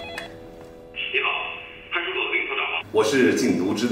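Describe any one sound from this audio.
A man talks on a phone.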